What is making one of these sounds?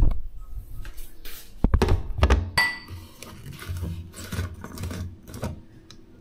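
A plastic bottle lid clicks and twists as it is screwed on.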